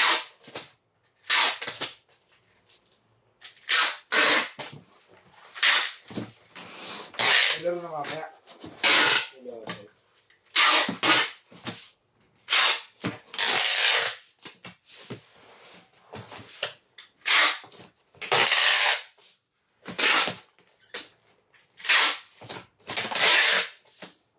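Cardboard sheets rustle and scrape as they are handled and slid.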